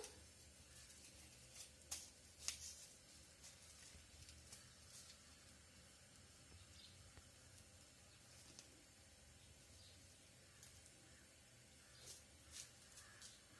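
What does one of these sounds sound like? A cloth rustles softly in someone's hands.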